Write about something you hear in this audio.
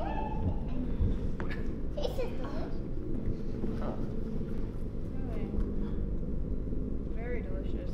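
Young people talk and chatter nearby.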